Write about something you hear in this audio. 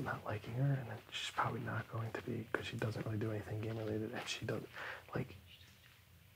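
A young man talks calmly nearby.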